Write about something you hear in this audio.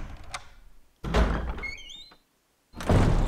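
A heavy wooden door creaks slowly open.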